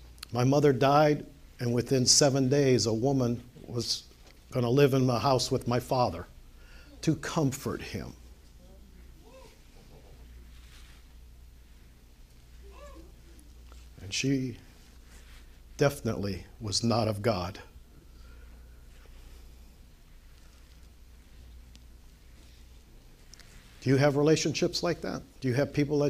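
An elderly man speaks calmly through a lapel microphone, with long pauses.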